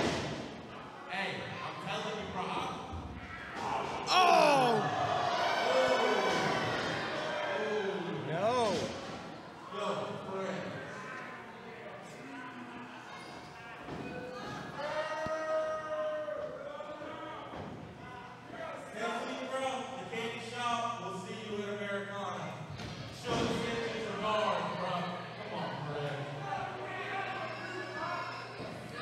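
A man speaks loudly into a microphone, heard through loudspeakers in an echoing hall.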